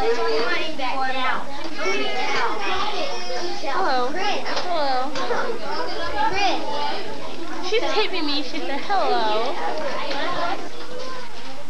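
Children talk and shout excitedly close by.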